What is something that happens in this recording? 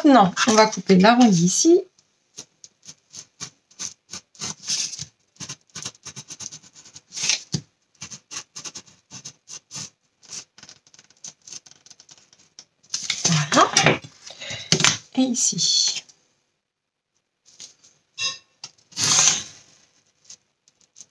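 A blade scrapes and scores along cardboard in short scratchy strokes.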